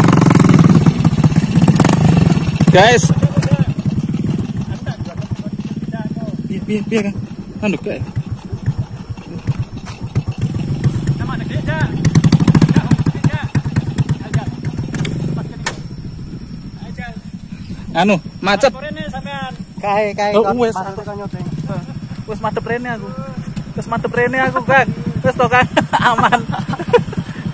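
A small motorbike engine chugs and revs.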